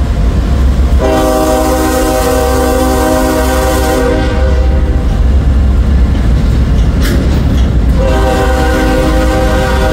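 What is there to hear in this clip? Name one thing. A locomotive horn blows loudly in long blasts.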